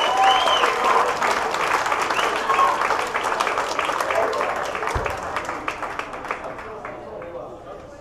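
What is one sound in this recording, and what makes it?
A rock band plays live on amplified guitars and drums.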